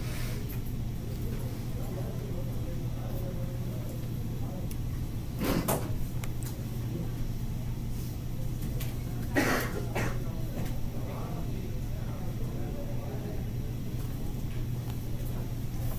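A projector fan hums steadily.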